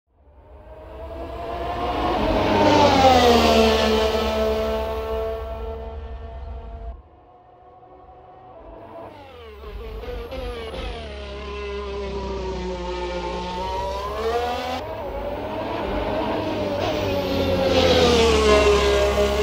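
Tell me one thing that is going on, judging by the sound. A racing car's engine screams at high revs, rising and falling in pitch as the car speeds past.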